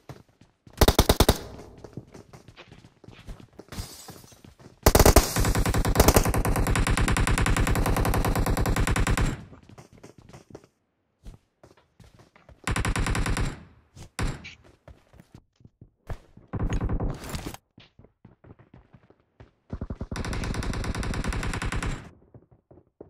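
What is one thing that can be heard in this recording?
A gun fires in rapid, rattling bursts.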